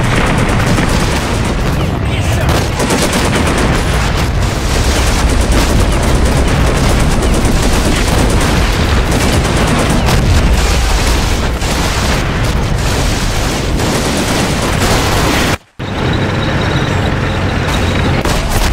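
Explosions and gunfire crackle and boom in a battle.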